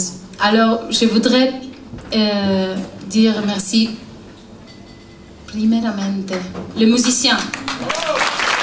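A young woman speaks calmly into a microphone over loudspeakers.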